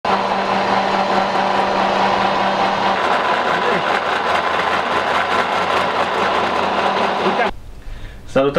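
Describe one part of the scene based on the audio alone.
A machine hums and whirs loudly and steadily, then stops.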